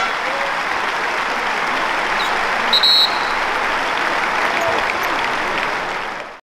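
A large crowd cheers and chatters loudly in an echoing arena.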